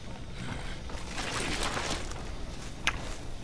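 Dry corn stalks rustle and swish.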